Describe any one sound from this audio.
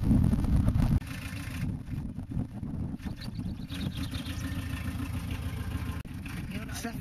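A van engine idles with a low rumble.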